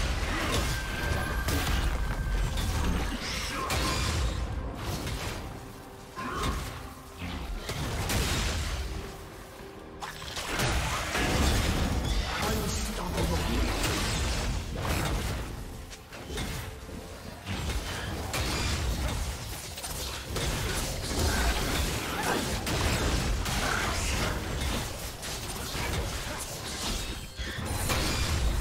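Spell effects crackle and boom as game characters fight a large monster.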